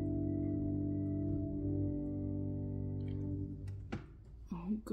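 An organ holds a full sustained chord, then stops abruptly.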